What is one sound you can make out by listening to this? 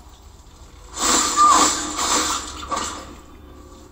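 A heavy blow and scuffle crash through a small speaker.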